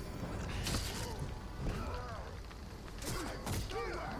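A sword slashes and strikes in a fight.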